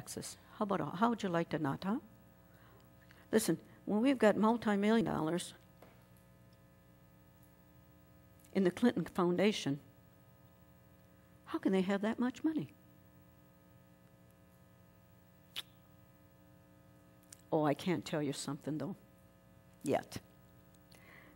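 An elderly woman speaks with emphasis in short bursts, heard through a microphone in a reverberant hall.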